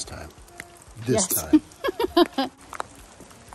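A woman laughs cheerfully close by.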